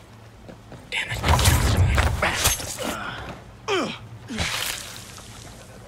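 Combat gear rustles and thuds close by.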